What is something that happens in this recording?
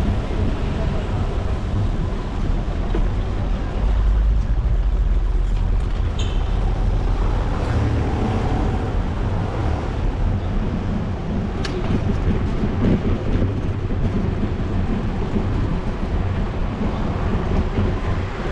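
Wind blows steadily outdoors, rumbling against the microphone.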